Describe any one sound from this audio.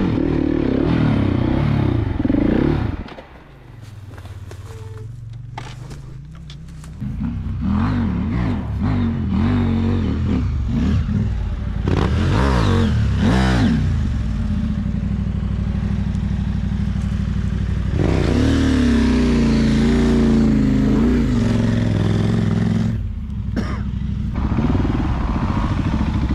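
A motorcycle idles with a low rumble.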